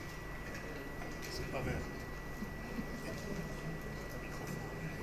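A man speaks calmly through a microphone in a large, echoing hall.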